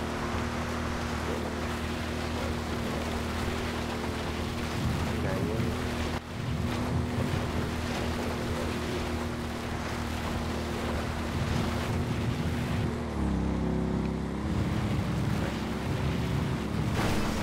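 A quad bike engine drones steadily.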